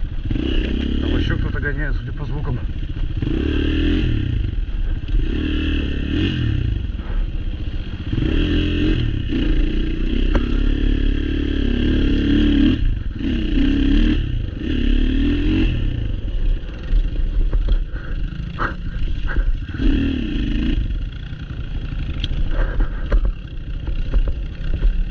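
A dirt bike engine revs up and down close by.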